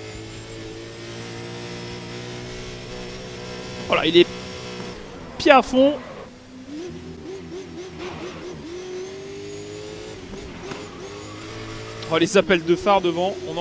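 A racing car engine roars at high speed and shifts gears.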